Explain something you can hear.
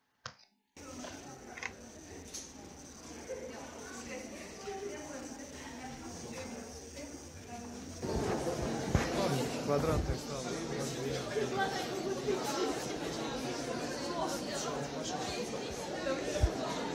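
Many people chatter in the background.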